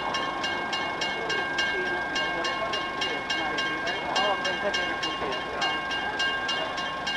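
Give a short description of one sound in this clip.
Men and women talk nearby.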